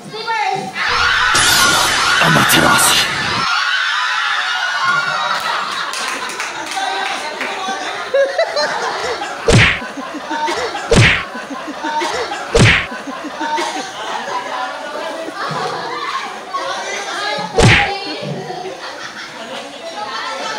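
A crowd of young people laughs and shouts with excitement.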